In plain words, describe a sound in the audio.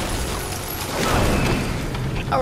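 A heavy gun fires with a sharp, crackling blast.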